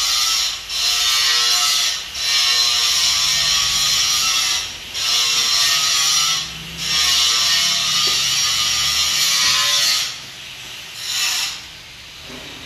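A metal lathe cuts with a harsh, hissing screech that comes in repeated loud bursts.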